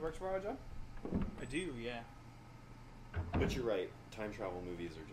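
A heavy door creaks open slowly.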